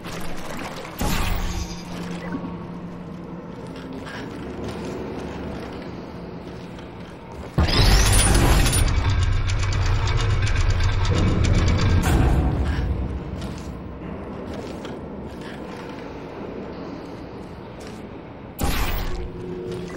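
A portal gun fires with a sharp zap.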